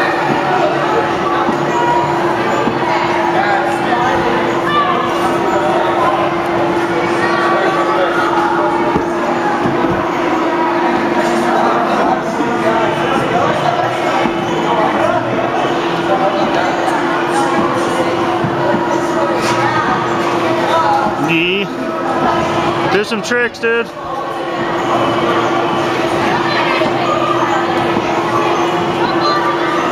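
Children bounce on trampolines with soft thumps and creaks.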